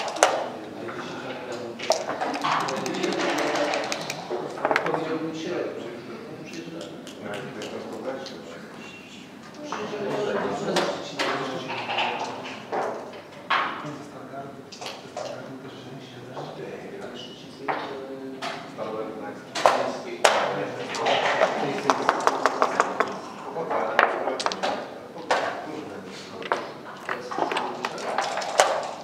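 Dice rattle in a cup and tumble onto a board.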